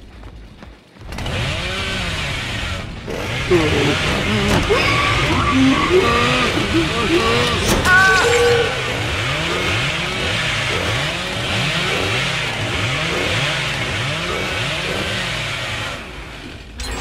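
A chainsaw roars loudly, its engine revving up and down.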